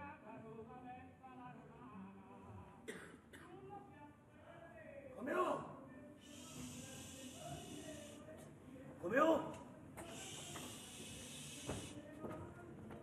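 A man sings with a strong voice.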